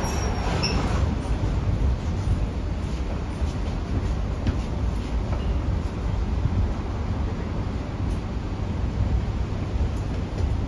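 A subway train rumbles and hums steadily.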